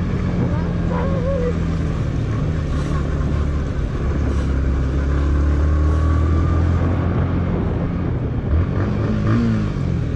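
Tyres crunch and rumble over a rough dirt track.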